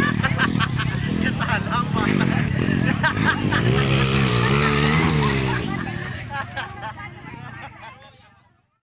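A crowd of men and children shouts and cheers outdoors.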